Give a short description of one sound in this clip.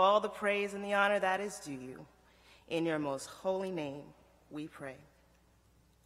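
A woman sings slowly through a microphone.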